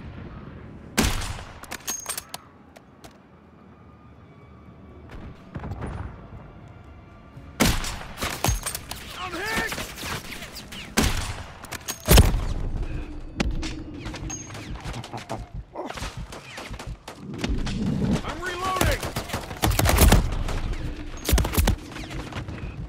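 Sharp rifle shots crack, echoing outdoors.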